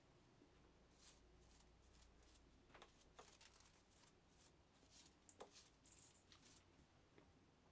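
A brush sweeps and scrapes metal chips.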